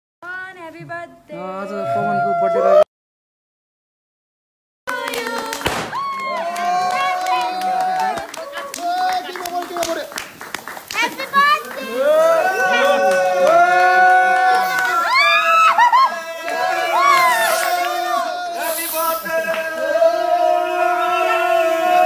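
A group of people sing together loudly nearby.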